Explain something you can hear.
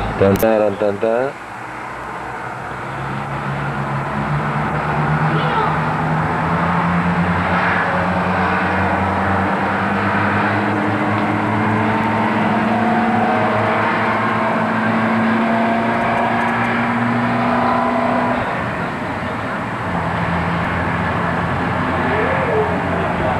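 Distant city traffic hums steadily outdoors.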